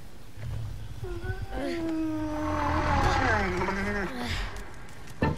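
A large creature lets out long, warbling cries.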